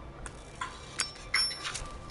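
Wooden arrows knock and rattle.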